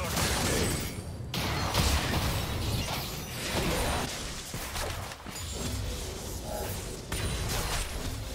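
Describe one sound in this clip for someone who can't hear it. Game spell effects burst and crackle in a busy fight.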